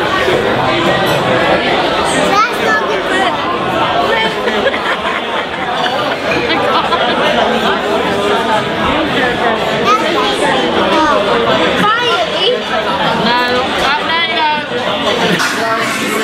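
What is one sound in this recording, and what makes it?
A group of people sing together loudly close by.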